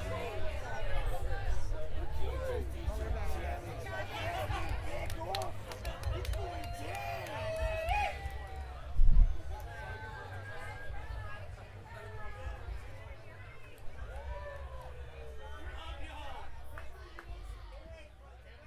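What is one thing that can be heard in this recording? A band plays music through loudspeakers.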